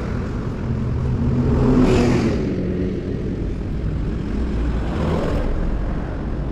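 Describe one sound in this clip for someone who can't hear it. A truck drives past close by.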